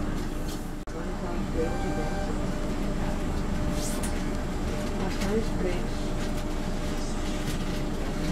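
Another train passes close by with a rushing sound.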